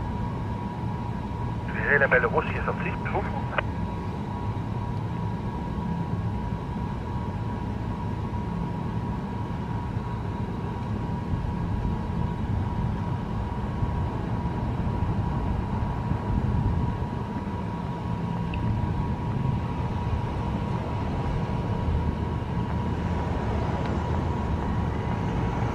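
A diesel train engine idles with a steady low rumble nearby.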